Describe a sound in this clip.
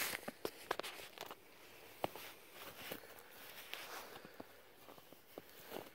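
Footsteps crunch slowly through snow.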